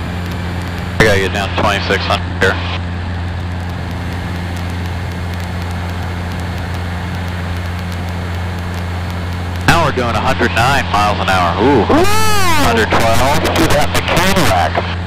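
A man speaks calmly through a headset intercom.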